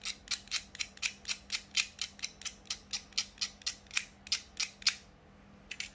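Small cutters snip through copper wire.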